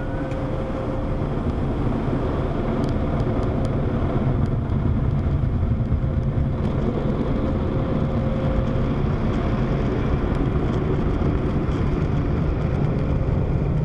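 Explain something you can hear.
Car wash machinery rumbles steadily from inside a car.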